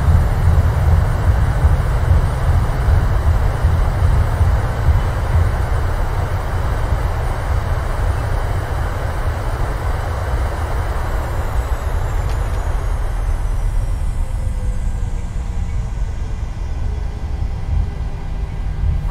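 Aircraft wheels rumble along a runway.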